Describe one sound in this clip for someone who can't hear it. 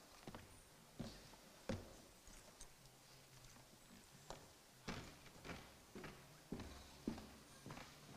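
Objects knock and bump as a man handles equipment.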